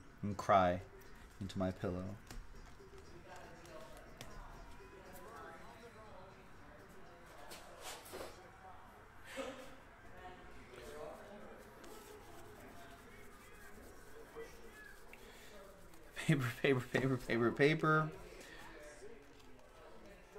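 Cards shuffle and slide against each other in hands.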